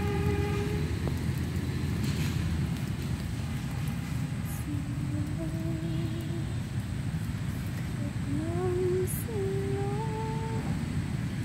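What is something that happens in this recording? Strong wind blows outdoors, rustling the leaves of trees.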